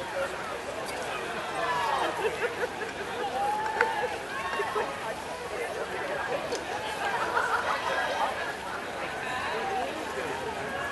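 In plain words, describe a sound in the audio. Paddles splash in the water.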